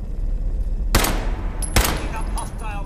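A rifle fires two loud, sharp shots close by.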